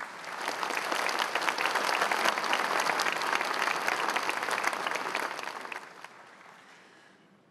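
A large crowd applauds in a big hall and fades out.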